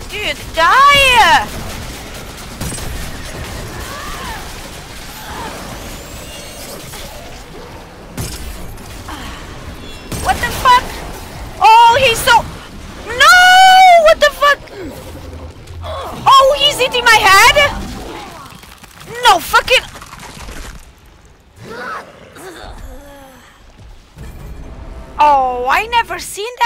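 A young woman talks and exclaims loudly into a microphone, with animation.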